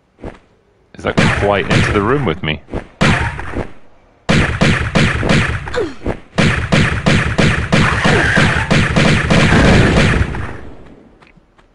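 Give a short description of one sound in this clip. Heavy blows and crashes ring out.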